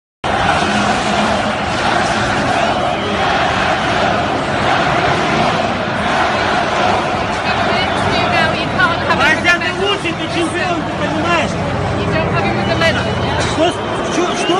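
A crowd murmurs and chatters loudly all around.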